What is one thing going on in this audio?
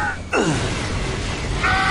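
An explosion bursts with a loud roar.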